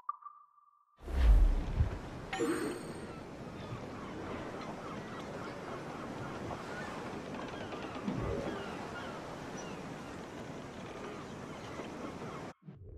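Water laps gently against a wooden pier.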